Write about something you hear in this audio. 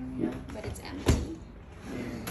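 A drawer slides open with a thud.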